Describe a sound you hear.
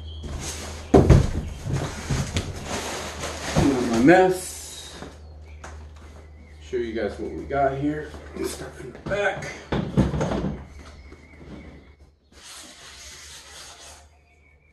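A seat thumps and scrapes on a table.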